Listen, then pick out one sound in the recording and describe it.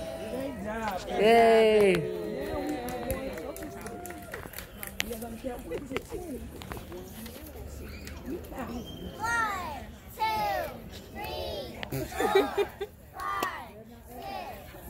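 Young children call out answers together.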